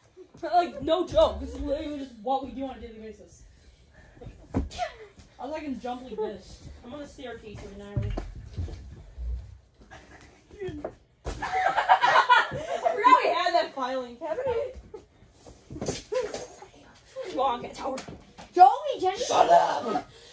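A child thumps down onto a mattress.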